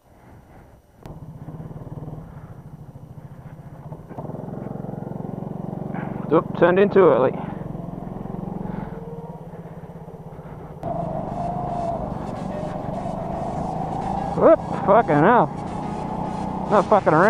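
A go-kart engine drones steadily close by, rising as the kart speeds up.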